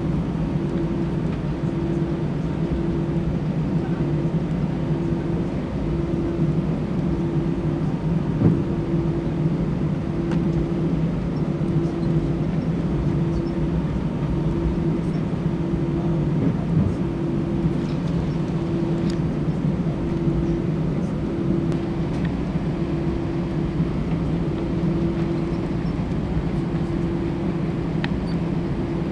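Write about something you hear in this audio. A jet airliner's engines hum steadily from inside the cabin.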